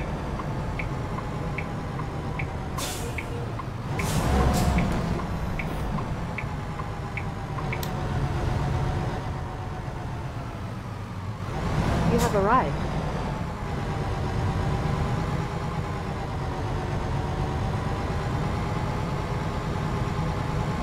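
A truck engine rumbles steadily.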